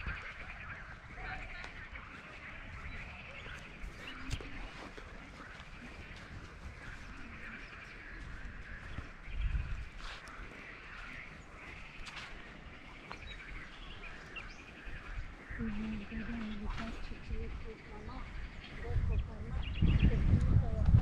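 Wind gusts across the microphone outdoors, rumbling now and then.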